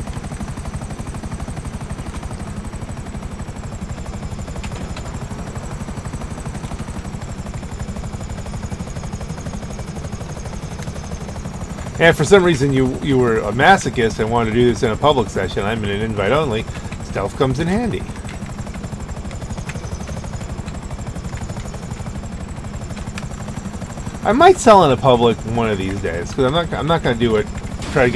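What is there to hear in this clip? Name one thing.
Helicopter rotor blades thump steadily throughout.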